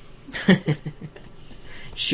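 A woman laughs close to a microphone.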